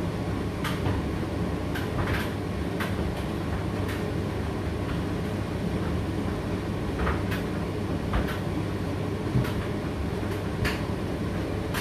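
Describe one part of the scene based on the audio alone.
A condenser tumble dryer hums as its drum turns.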